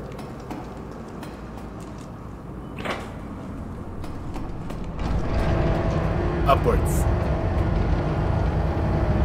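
Footsteps clank on a metal grating.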